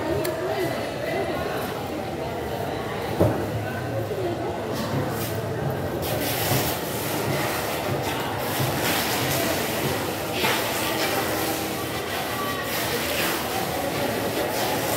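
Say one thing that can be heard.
A knife chops and scrapes through fish on a wooden board.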